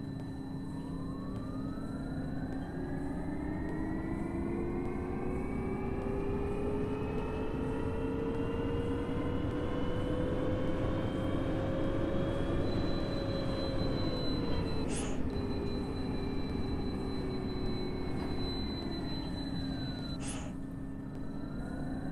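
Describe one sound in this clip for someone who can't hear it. A bus engine hums and whines, rising in pitch as it speeds up and falling as it slows.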